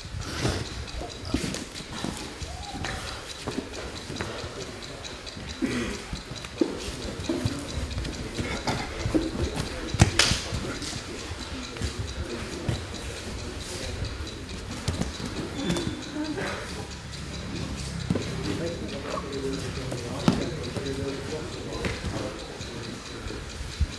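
Bodies thump and shuffle on a padded mat.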